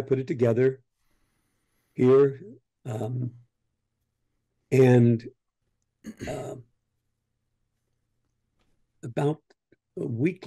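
An elderly man speaks with animation in short bursts over an online call.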